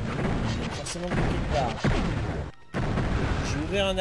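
A fireball explodes with a loud blast.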